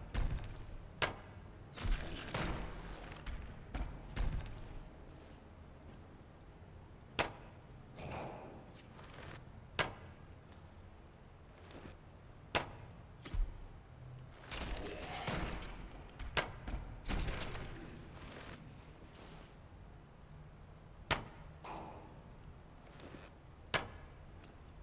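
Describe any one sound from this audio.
A bowstring snaps sharply as arrows are loosed, again and again.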